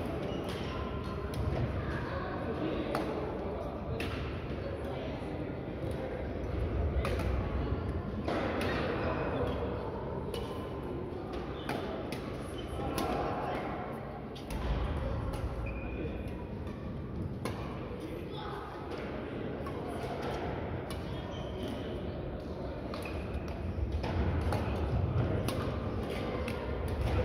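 Badminton rackets strike shuttlecocks with sharp pops in a large echoing hall.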